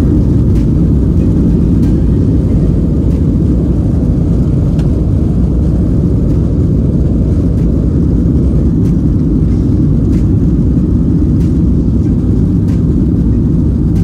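Wheels rumble and thump over the runway.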